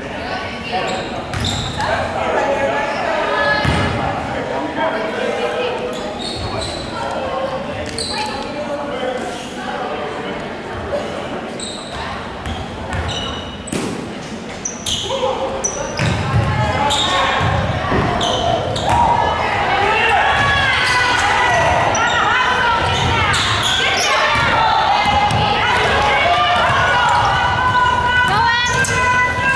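Basketballs bounce on a hard floor in a large echoing gym.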